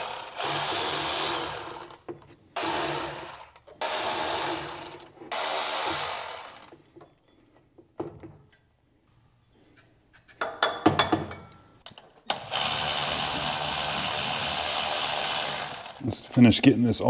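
A cordless ratchet whirs in short bursts.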